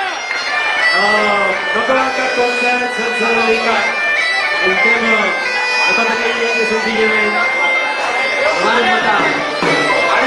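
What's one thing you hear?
An accordion plays steady chords.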